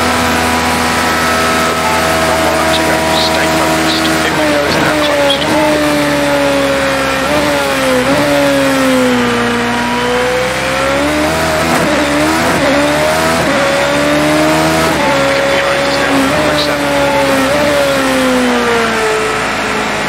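Rain hisses on the track and car.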